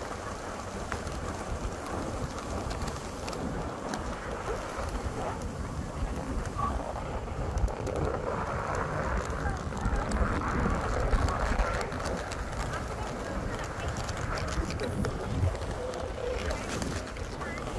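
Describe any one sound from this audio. Strong wind blows and buffets outdoors.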